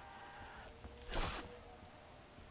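A heavy melee strike lands with a loud whoosh.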